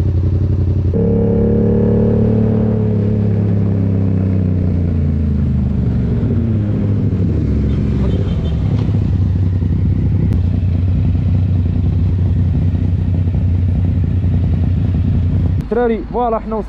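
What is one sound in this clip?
A motorcycle engine revs up and rises in pitch as it accelerates through the gears.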